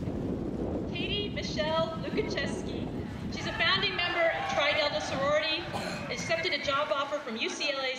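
Young women talk and laugh excitedly close by.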